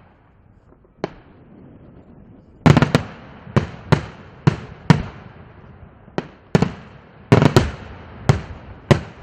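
Fireworks burst with loud booming bangs that echo outdoors.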